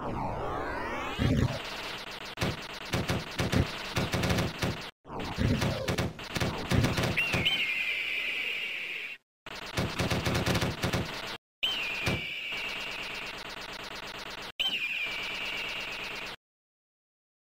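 Rapid electronic shots and explosions burst from an arcade game.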